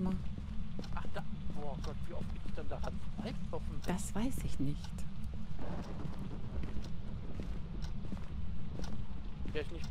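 A woman speaks with animation, close to a headset microphone.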